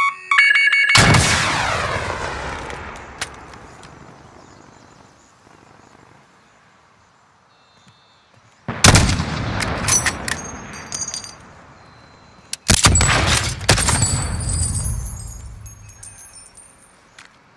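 A sniper rifle fires loud shots that boom and echo away slowly.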